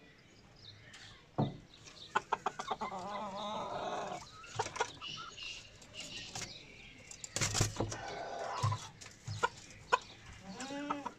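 Hens cluck and squawk close by.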